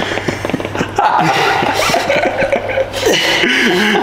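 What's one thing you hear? A young man grunts and strains with effort.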